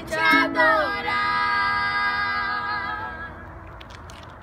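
Young girls sing a long held note together, close by.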